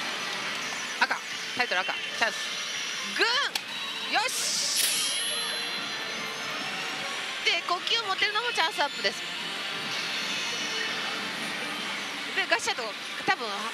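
A young woman exclaims with excitement close to a microphone.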